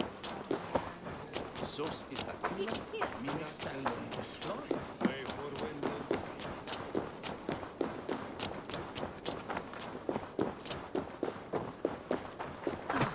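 Quick footsteps run over stone and dirt.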